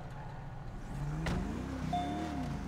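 A car engine hums at idle.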